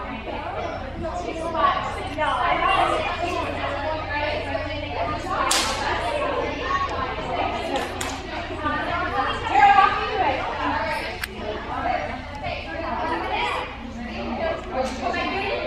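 A crowd of girls chatter and call out in a large echoing hall.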